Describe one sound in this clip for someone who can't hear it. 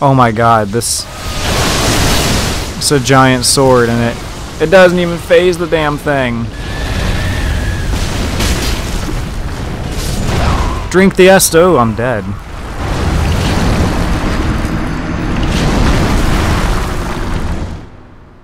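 A huge beast crashes and rumbles heavily.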